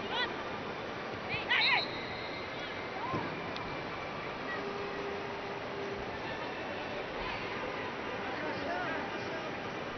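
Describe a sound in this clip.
Fans in the crowd shout and whistle now and then.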